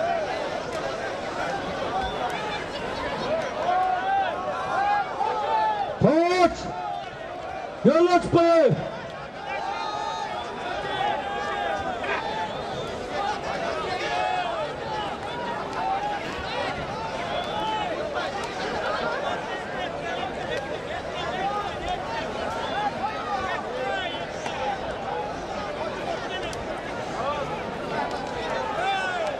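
A large crowd of men talks and shouts outdoors.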